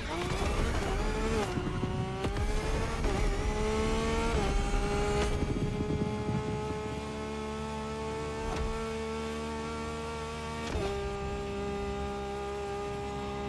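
A sports car engine roars at high speed, shifting gears with sudden drops in pitch.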